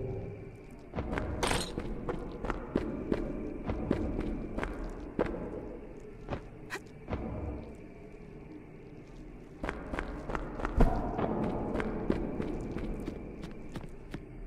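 Sword blows strike in a fight.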